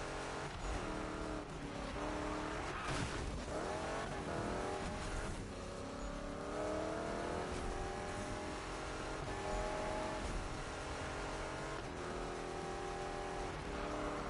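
A car engine roars at high revs and shifts through gears.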